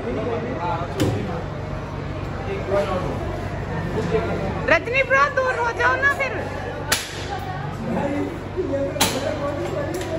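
Darts thud into a board.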